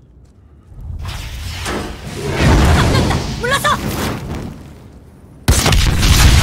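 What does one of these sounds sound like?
Fire roars and crackles.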